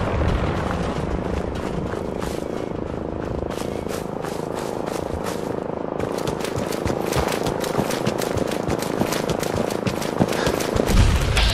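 Footsteps crunch over dirt and gravel.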